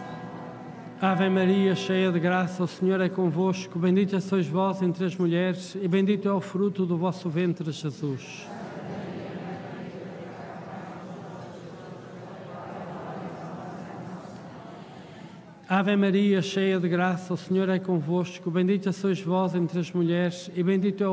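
An elderly man chants slowly into a microphone, heard through loudspeakers in a large echoing space.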